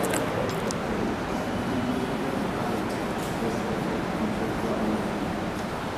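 A marker squeaks across a whiteboard.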